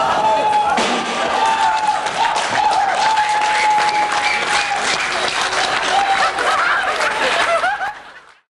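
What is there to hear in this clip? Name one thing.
Electric guitars play loudly with heavy distortion.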